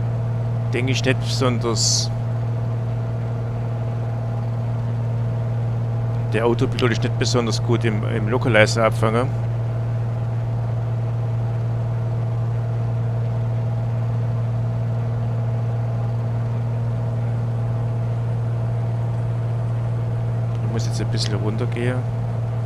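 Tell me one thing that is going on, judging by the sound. The engine of a single-engine piston plane drones in cruise, heard from inside the cockpit.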